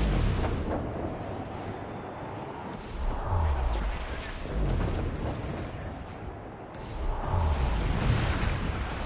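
Waves in a rough sea surge and crash against a wooden ship's hull.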